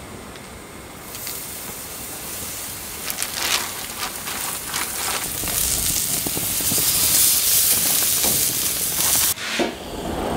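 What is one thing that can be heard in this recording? Meat sizzles loudly on a hot grill.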